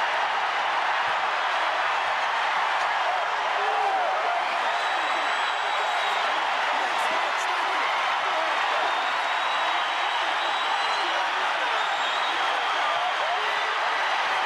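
A large crowd cheers and roars loudly in a big echoing arena.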